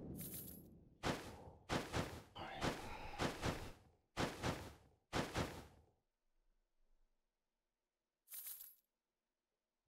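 Short game sound effects whoosh and thud in quick succession.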